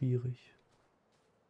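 A man speaks briefly, close to a microphone.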